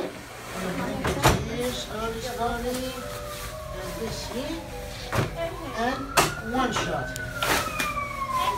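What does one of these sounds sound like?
A young child talks nearby.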